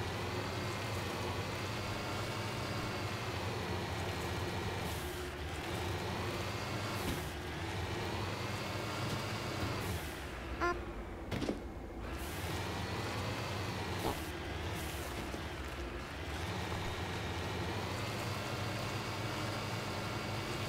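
A vehicle engine hums steadily and rises and falls in pitch.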